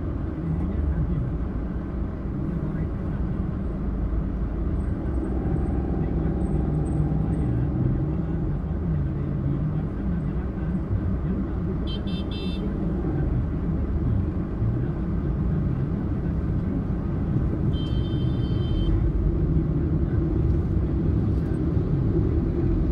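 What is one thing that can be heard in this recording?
Traffic rumbles all around on a busy road.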